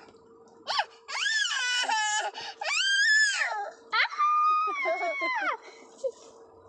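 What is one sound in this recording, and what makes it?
A young girl laughs and squeals loudly close by.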